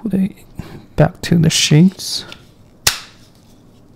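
A knife slides into a hard plastic sheath and snaps into place.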